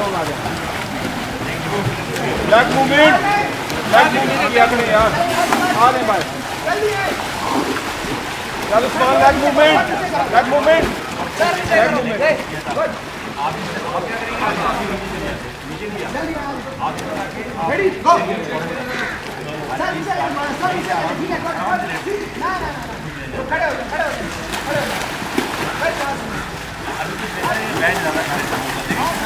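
Several young men talk and shout with animation outdoors.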